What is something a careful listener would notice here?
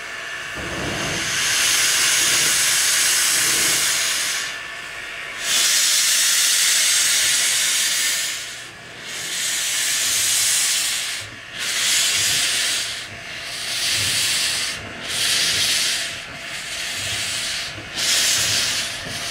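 A steam locomotive hisses loudly as it vents steam.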